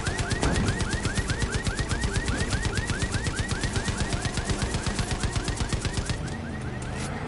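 A heavy machine gun fires in a rapid, steady burst.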